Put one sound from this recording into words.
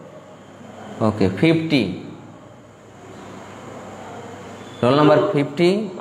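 A man speaks calmly and closely into a microphone, in short phrases with pauses.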